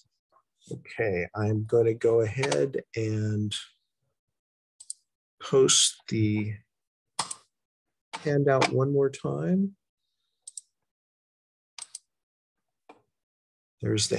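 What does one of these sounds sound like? An elderly man speaks calmly in pauses, heard through an online call.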